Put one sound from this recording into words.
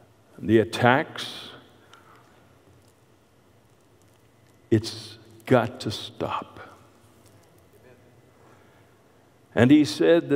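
An elderly man speaks slowly and deliberately into a microphone, with pauses, in a large echoing room.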